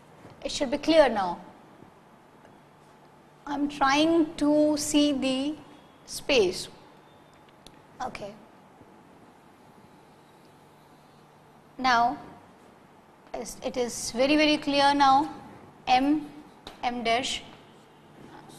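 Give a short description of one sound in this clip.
A woman speaks clearly in short phrases, close to a microphone.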